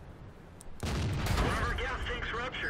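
A tank cannon fires with a loud, booming blast.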